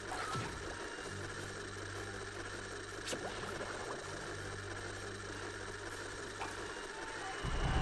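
Low, steady video game music plays.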